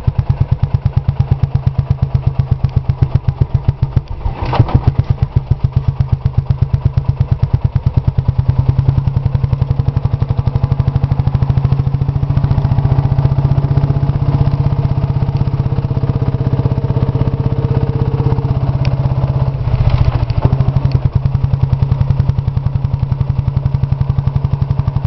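An old single-cylinder tractor engine chugs steadily up close.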